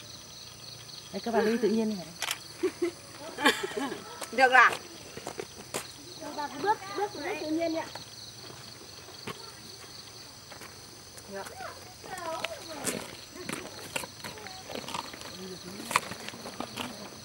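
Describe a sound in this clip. Elderly women chat and laugh together nearby, outdoors.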